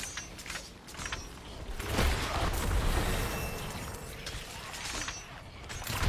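A chime rings as a level is gained.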